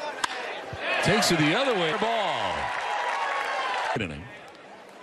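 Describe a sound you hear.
A large crowd cheers outdoors.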